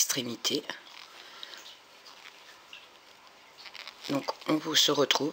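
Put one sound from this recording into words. Knitting needles click softly against each other.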